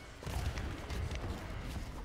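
A magical blast bursts with a whoosh.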